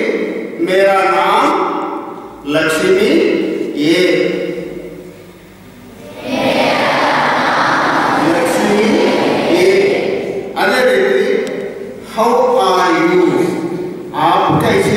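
A middle-aged man speaks steadily through a microphone and loudspeakers in an echoing hall.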